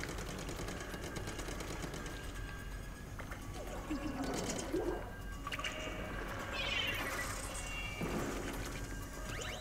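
Game sound effects splat and whoosh.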